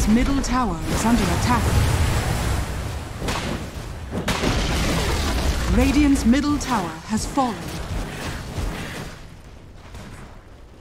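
Fantasy battle effects whoosh and clash.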